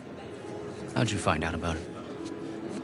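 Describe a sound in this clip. A man asks a question with a puzzled tone, close by.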